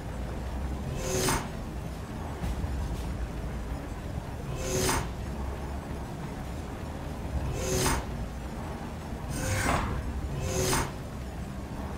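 A heat beam fires in short, sharp hissing bursts.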